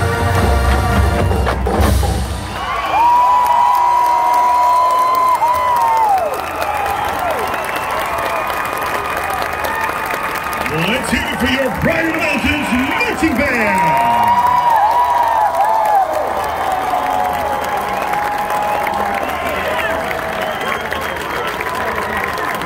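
A marching band plays brass and drums across a large open stadium.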